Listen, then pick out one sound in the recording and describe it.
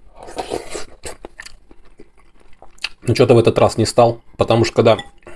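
A metal spoon clinks against a glass bowl.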